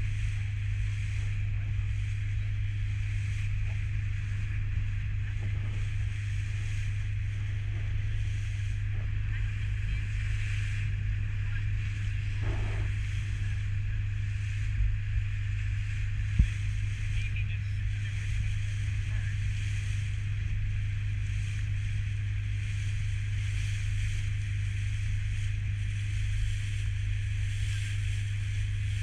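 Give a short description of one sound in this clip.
Water splashes and rushes against a moving boat's hull.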